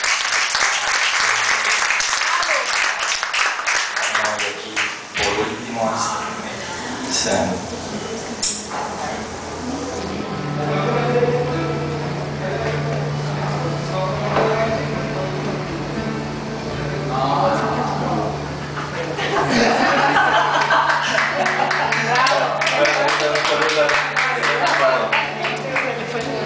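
A crowd in a room chatters and cheers loudly.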